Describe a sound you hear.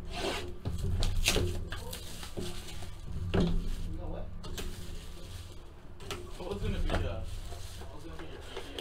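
Cardboard packs rustle and crinkle in hands.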